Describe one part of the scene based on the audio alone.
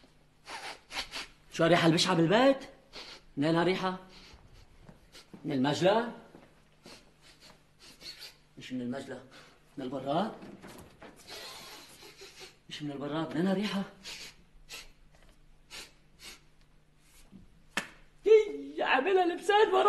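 A young man talks loudly and with agitation, close by.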